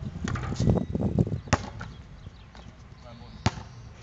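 A basketball clangs off a hoop's rim.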